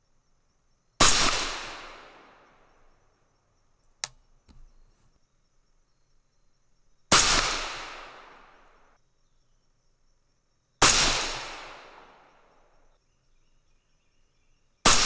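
A rifle fires loud single shots that echo and fade outdoors.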